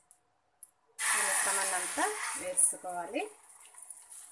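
Beaten egg pours into a hot pan and sizzles loudly.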